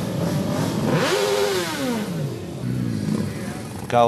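A motorcycle engine rumbles and revs as it rides past.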